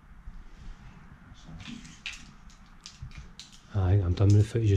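Small objects clatter softly in a man's hands.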